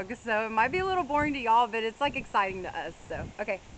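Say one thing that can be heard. A young woman talks close up, with animation.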